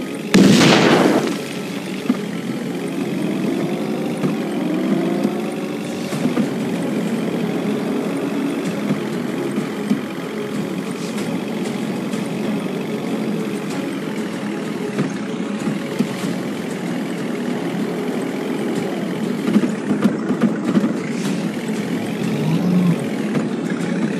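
A car engine roars steadily as a car speeds along.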